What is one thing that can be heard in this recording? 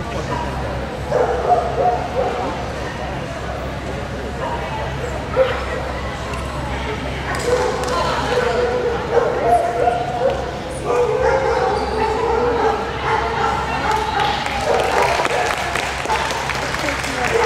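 A young woman calls out commands to a dog in a large echoing hall.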